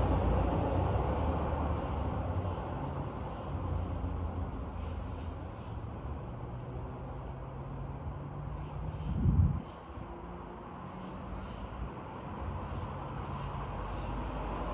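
Wind rustles the leaves of tall trees outdoors.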